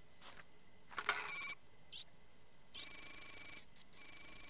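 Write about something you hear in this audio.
A computer game's warning alarm buzzes in rapid pulses.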